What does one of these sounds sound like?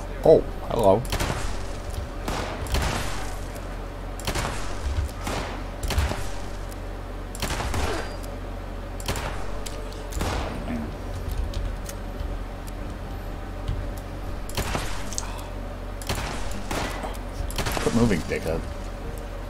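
A rifle fires repeated shots.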